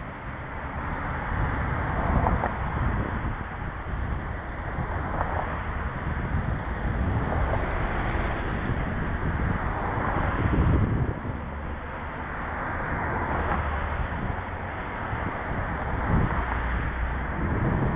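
A car's engine hums and its tyres roll on the road from inside the car.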